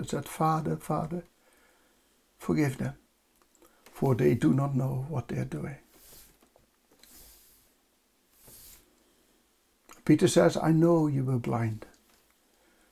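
A middle-aged man speaks calmly into a close microphone, with pauses.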